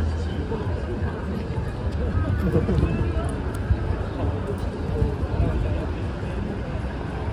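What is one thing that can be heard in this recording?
A crowd of people murmurs and talks around.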